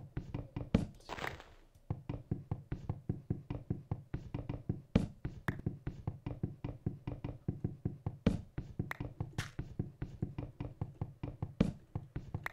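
Rapid, dull knocks sound again and again as wooden blocks are struck and broken.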